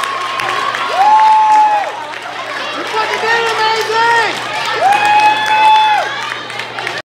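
Women let out long, high whoops.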